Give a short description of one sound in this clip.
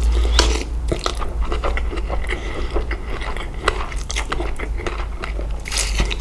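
A man chews wet food close to the microphone.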